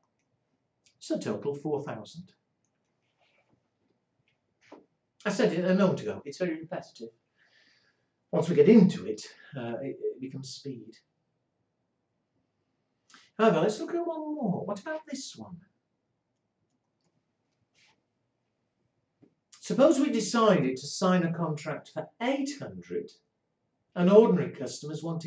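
A middle-aged man lectures calmly into a close microphone, with pauses between phrases.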